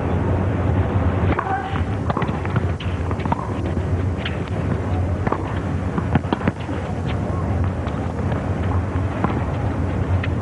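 A tennis ball is struck back and forth with rackets in sharp pops.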